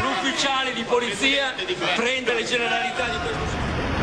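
A crowd of men talks over one another at close range.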